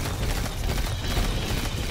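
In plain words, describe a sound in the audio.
Electric crackling buzzes loudly.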